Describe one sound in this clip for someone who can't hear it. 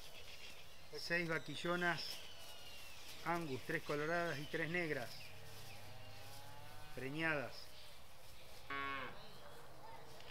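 Cattle moo loudly nearby, in repeated calls.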